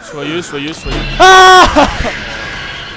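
A young man screams loudly in fright.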